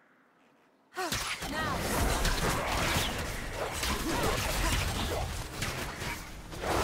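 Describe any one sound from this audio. Magic spells blast and crackle in a video game fight.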